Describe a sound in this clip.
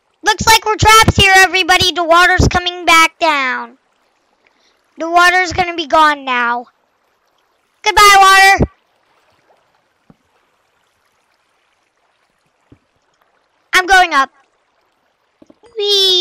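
A young boy talks with animation into a microphone, close up.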